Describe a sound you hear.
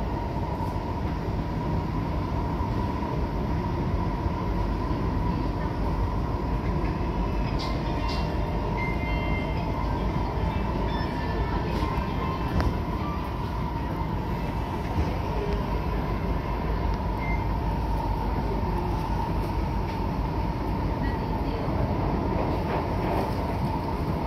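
Train wheels clack and squeal on the rails now and then.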